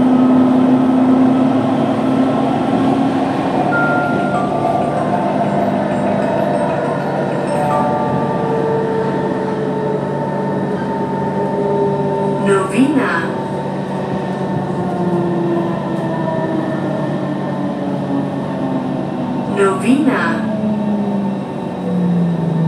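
A train's motor whines, its pitch gliding as it slows down.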